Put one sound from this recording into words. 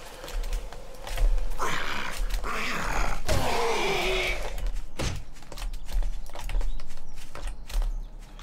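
A zombie growls and snarls nearby.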